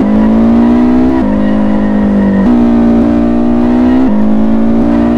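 A car engine revs high and steady, shifting gears now and then.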